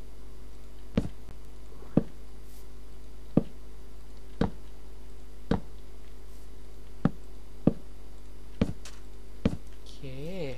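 Wooden blocks are placed with soft knocking thuds, one after another.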